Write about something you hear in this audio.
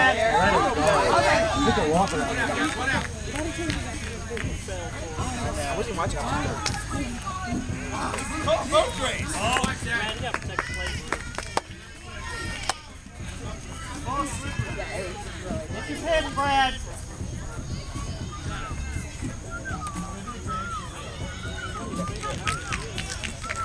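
Young men and women chatter and call out nearby, outdoors.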